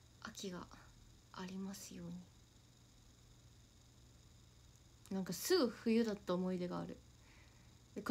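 A young woman speaks casually and close to a microphone, in short bursts with pauses.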